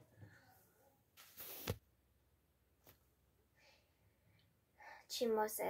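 A young girl speaks softly and close by.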